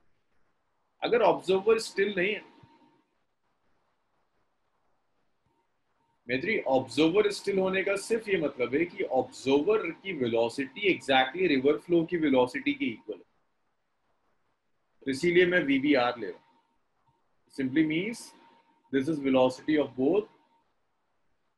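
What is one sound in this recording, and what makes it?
A young man speaks calmly into a microphone, explaining in short bursts with pauses.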